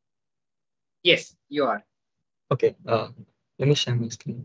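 A young man speaks calmly over an online call, in short bursts.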